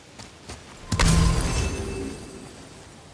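A magical burst whooshes and rings out, then fades.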